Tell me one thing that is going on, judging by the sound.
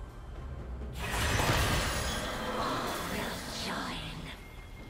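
Video game battle sound effects clash and burst.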